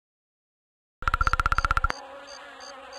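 Rapid electronic ticking sounds as game text types out.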